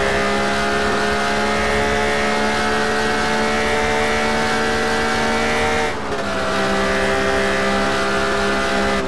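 A car engine roars steadily at high revs, dipping briefly as the gear shifts.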